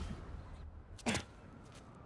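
A figure lands with a soft thud.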